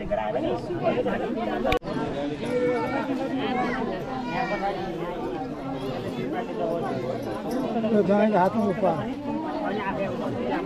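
A crowd of men and women chatter all around, outdoors.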